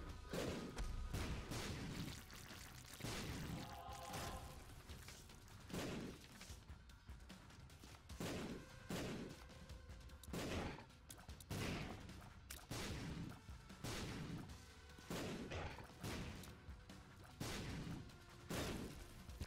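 Video game shots pop and splat in quick bursts.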